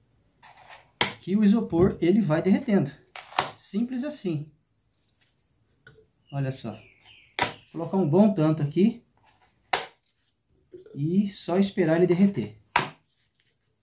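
Foam pieces crunch and snap as they are broken off.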